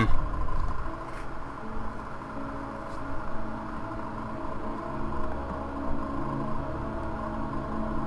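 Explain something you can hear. Footsteps clang on a metal ladder and tank roof.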